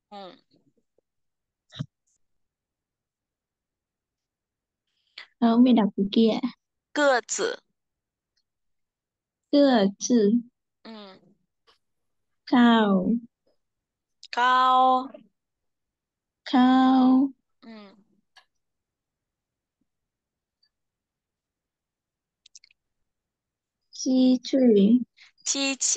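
A woman speaks slowly and clearly through an online call, pausing between words.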